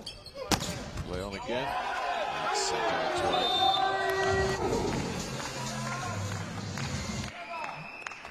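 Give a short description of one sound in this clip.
A crowd in a large echoing hall cheers and claps.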